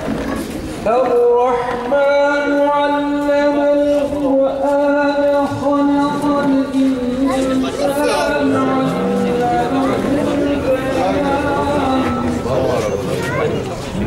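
Music with a singing voice plays over a loudspeaker.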